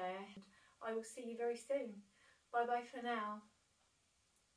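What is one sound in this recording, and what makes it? A woman speaks calmly and warmly, close to a microphone.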